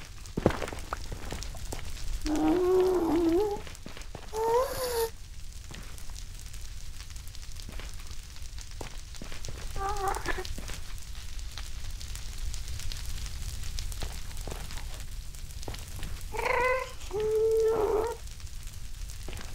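Fire crackles softly.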